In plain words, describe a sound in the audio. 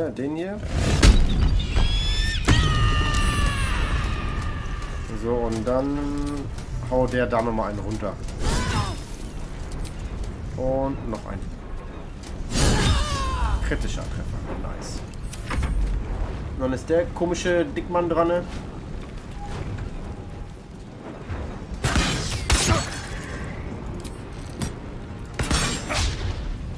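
A fiery spell bursts with a loud whoosh.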